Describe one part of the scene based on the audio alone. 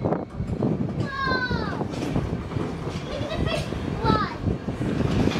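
Train wheels squeal sharply on the rails.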